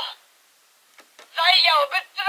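A toy's plastic trigger clicks twice.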